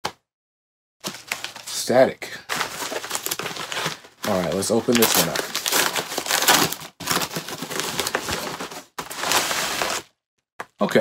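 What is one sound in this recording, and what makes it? A padded envelope rustles and crinkles as it is handled.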